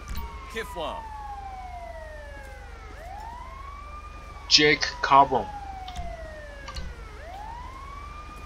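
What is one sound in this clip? A police siren wails nearby, rising and falling.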